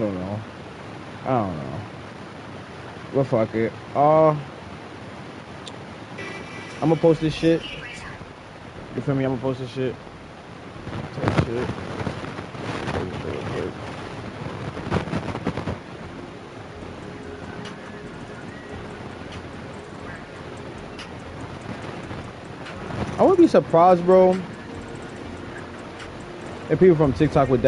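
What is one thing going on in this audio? A man talks with animation close to a microphone, in short bursts.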